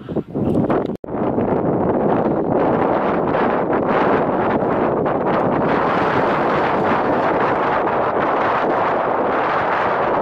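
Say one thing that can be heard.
Wind blows steadily across an open mountainside.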